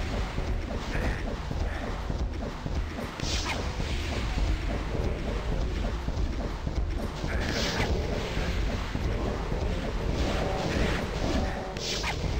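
Rockets explode with heavy booms.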